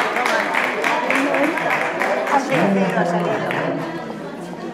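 People clap their hands in a lively rhythm.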